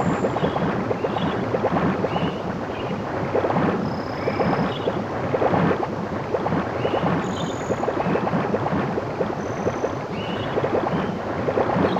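Water splashes with steady swimming strokes.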